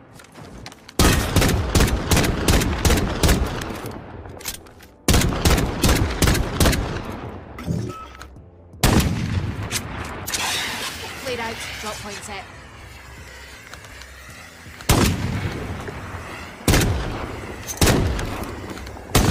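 Gunshots fire in quick bursts, each followed by echoing rumble.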